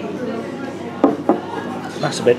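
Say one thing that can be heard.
A glass knocks on a wooden table.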